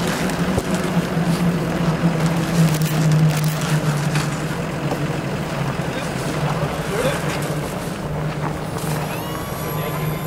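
A stretcher rattles and clanks as it is loaded into an ambulance.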